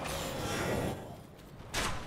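Lightning crackles in a hand.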